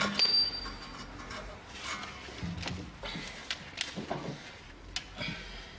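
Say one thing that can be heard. Metal parts clink and knock as a hand handles a wheel hub.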